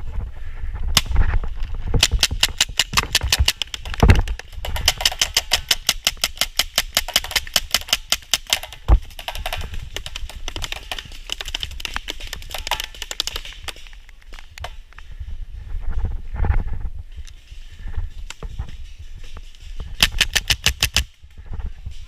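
A paintball marker fires rapid bursts of sharp pops close by.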